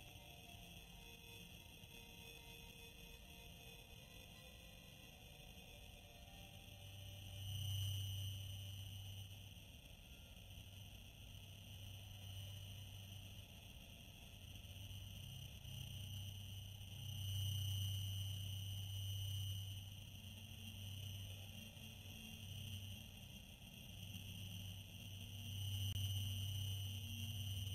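A spaceship engine drones with a deep hum that swells and fades.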